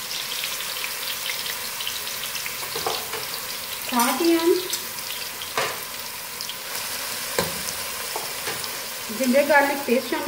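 Onions sizzle steadily in hot oil.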